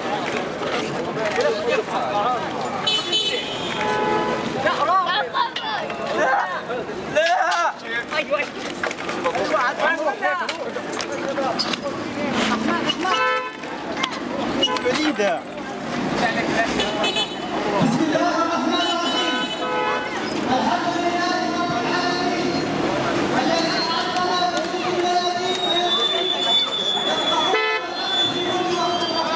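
A crowd of men murmurs and talks nearby outdoors.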